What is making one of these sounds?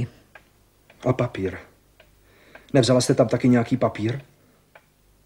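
A man speaks urgently and close by in a low voice.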